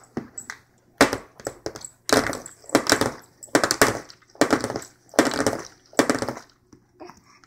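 A plastic bottle bangs repeatedly on a tray.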